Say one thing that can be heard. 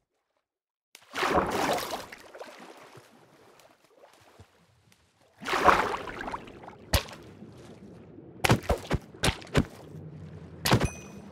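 Water splashes and bubbles loudly.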